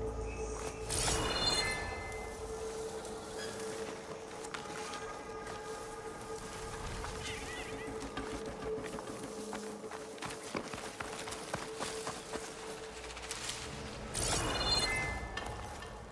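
A short bright chime rings out when an item is picked up.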